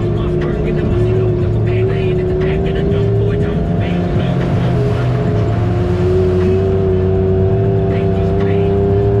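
An off-road vehicle's engine drones steadily up close.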